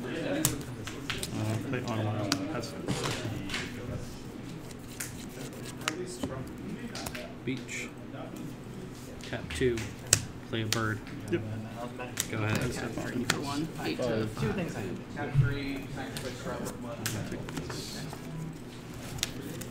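Playing cards riffle and flick as they are shuffled in the hands.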